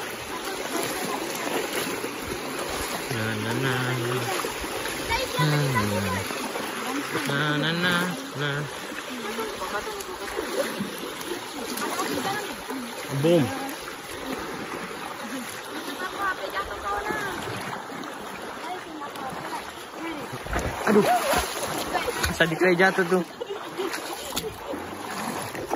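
A shallow stream rushes steadily over stones.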